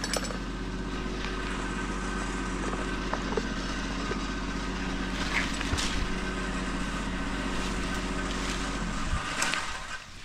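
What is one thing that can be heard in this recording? A chainsaw idles close by with a steady rumbling hum.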